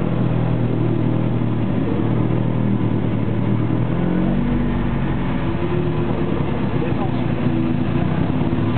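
A race car engine idles loudly with a deep rumble, heard from inside the car.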